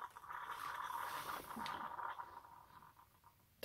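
A finger clicks a button on a coffee machine.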